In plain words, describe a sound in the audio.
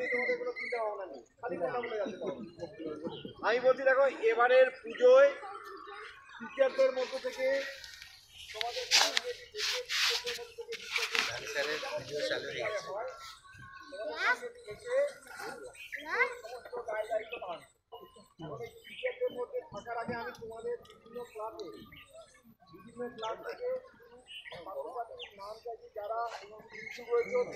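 A crowd of young people chatters nearby.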